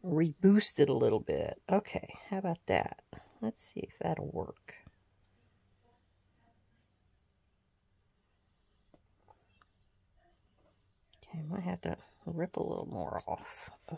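Paper rustles and crinkles between hands.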